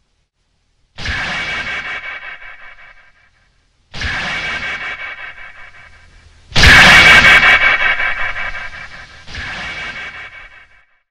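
Guitar chords are strummed loudly and left to ring out.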